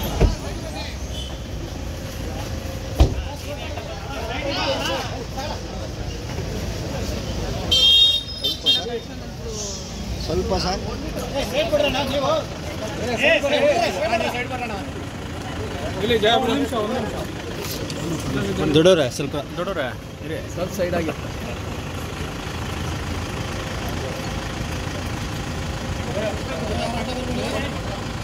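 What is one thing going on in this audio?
A crowd of men talk and call out all around, close by, outdoors.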